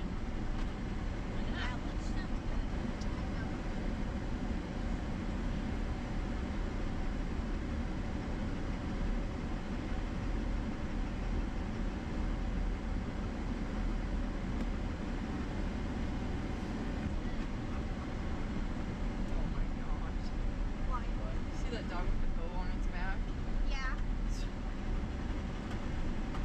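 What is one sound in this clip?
A car engine hums steadily inside the cabin while driving.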